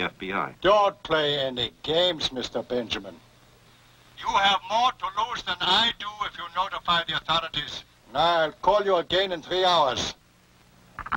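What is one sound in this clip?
An elderly man talks into a telephone.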